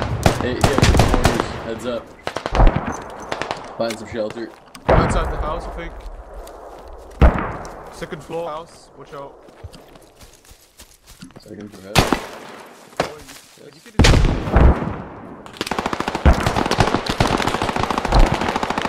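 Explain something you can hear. Rifles fire in rapid bursts nearby.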